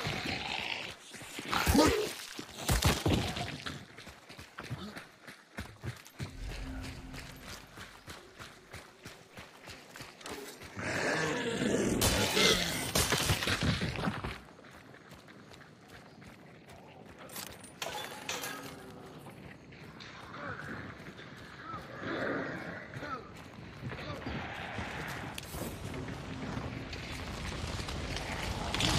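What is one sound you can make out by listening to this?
Footsteps thud steadily.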